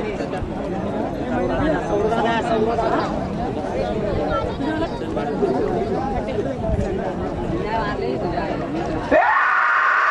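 A large crowd of men chatters and shouts outdoors.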